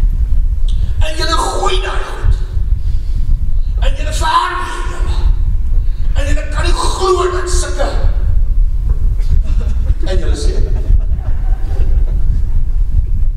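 An elderly man preaches with passion through a microphone.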